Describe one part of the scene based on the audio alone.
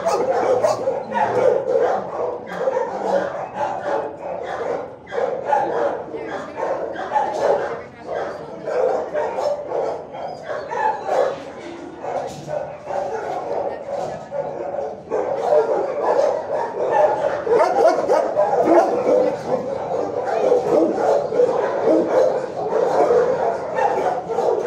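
Dogs bark and howl nonstop in an echoing room.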